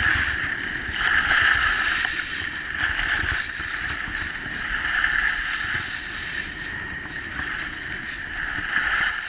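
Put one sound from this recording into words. Wind rumbles against a microphone.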